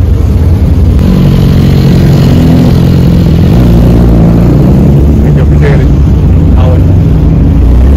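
A motorcycle engine idles loudly and revs nearby.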